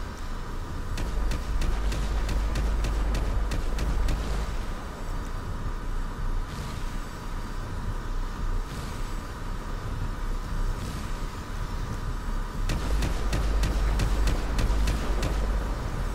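Vehicles explode with deep booms.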